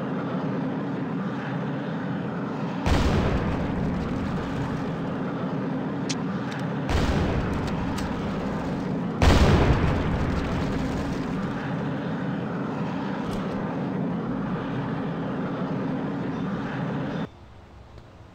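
A jet pack roars steadily.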